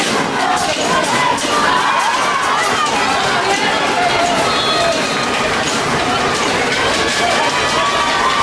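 Teenage boys shout to each other across an open outdoor field.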